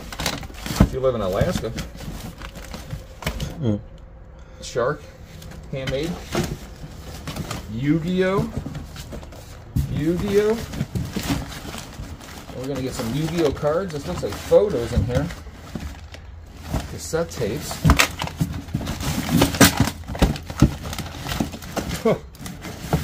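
Papers and cardboard rustle and scrape as hands rummage through a box.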